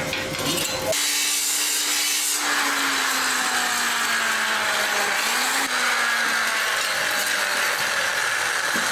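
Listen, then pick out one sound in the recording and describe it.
An angle grinder whines loudly, grinding metal.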